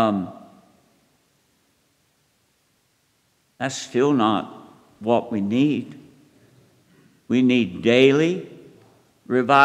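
An elderly man preaches with animation through a microphone in a large echoing hall, pausing between phrases.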